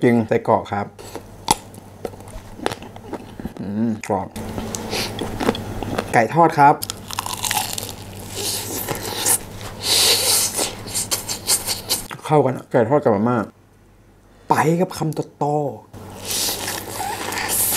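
A young man chews food loudly and wetly, close to a microphone.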